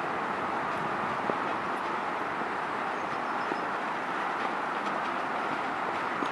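Footsteps scuff and crunch on dirt.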